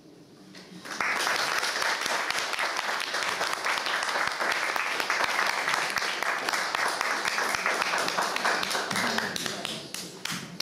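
A crowd claps loudly.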